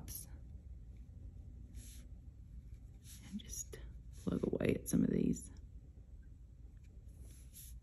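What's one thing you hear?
A paintbrush softly brushes across textured paper.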